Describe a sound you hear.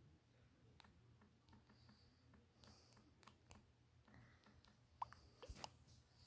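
Soft taps sound on a phone keyboard.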